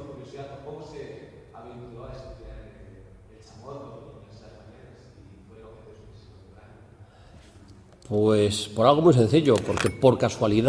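A middle-aged man speaks calmly into a handheld microphone, heard through loudspeakers.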